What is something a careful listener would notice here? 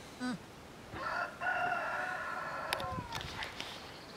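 A donkey foal brays in short high squeaks.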